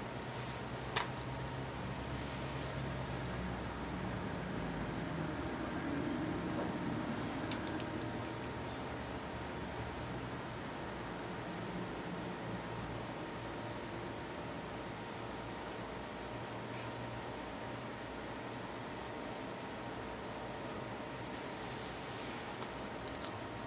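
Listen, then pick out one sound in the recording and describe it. Small plastic items click and tap as they are handled.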